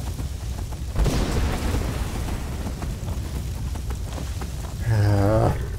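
Flames roar and whoosh in a strong blast.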